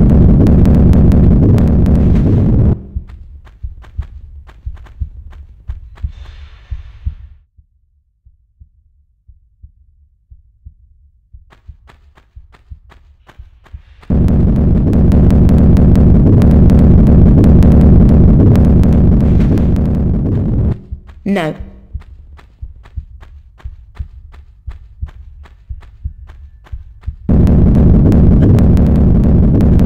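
Footsteps run quickly over a stone floor.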